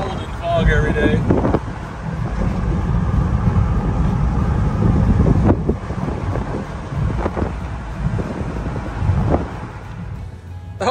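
A car's engine and tyres rumble steadily from inside the car as it drives along a road.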